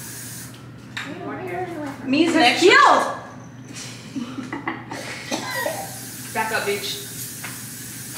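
Young women talk and laugh together close by, with lively voices.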